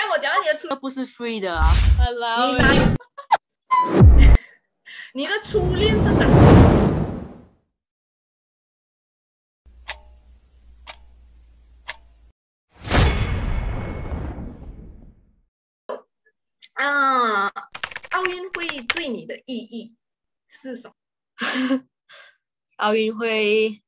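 A young woman talks with animation through an online call.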